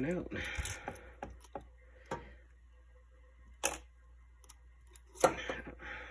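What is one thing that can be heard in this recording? A metal tool scrapes and clinks inside a glass jar.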